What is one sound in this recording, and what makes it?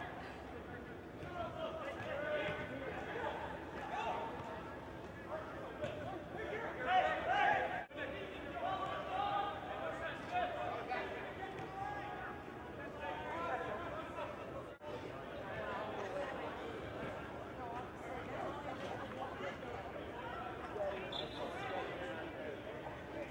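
Players shout to each other in a large echoing hall.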